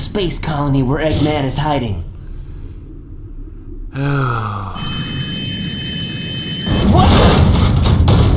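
Rocket engines roar.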